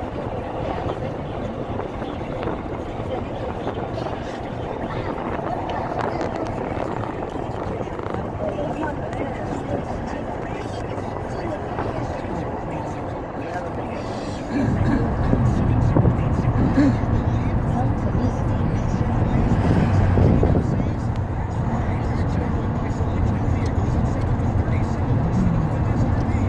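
A car drives along a road with a steady rumble of engine and tyres.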